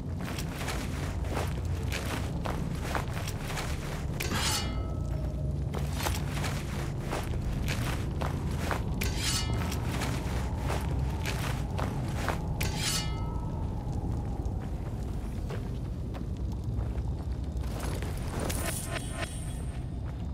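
A fire crackles steadily in a metal barrel.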